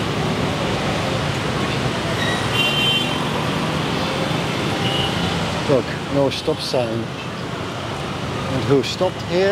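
Dense city traffic of motor scooters and cars rumbles past.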